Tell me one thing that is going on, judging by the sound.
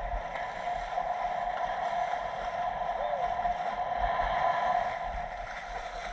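A dolphin splashes as it breaks the water's surface.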